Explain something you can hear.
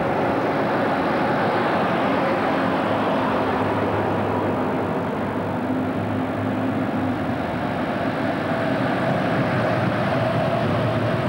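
Vintage military truck engines drone as the trucks approach along a road.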